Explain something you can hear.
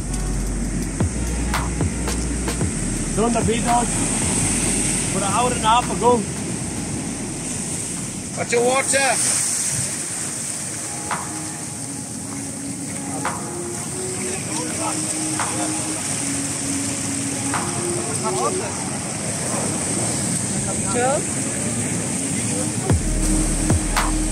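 Waves wash and churn in the surf.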